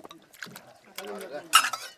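Water pours from a spout into a metal basin.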